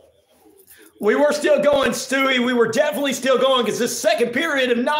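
A man speaks with animation close into a microphone.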